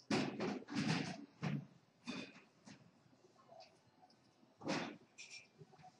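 Poker chips clack together on a table.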